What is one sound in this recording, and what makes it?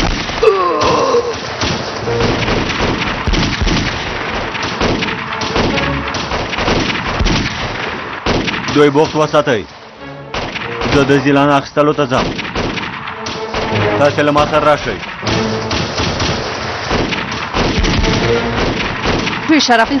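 Rifle shots crack out sharply.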